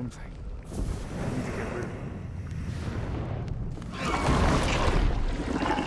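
A man talks into a microphone, calmly and close.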